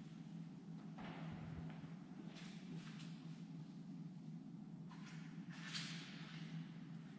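Footsteps shuffle on a stone floor in a large echoing hall.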